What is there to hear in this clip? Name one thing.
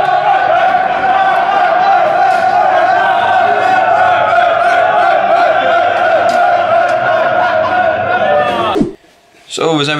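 A group of young men sing and cheer loudly.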